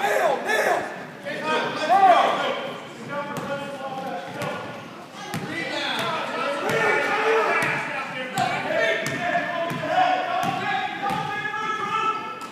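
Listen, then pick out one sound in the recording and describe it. Sneakers squeak on the gym floor.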